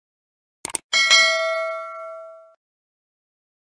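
A bell chimes brightly and slowly fades.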